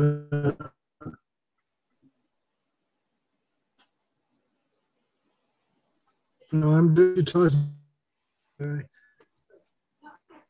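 An elderly man speaks with animation in short bursts over an online call.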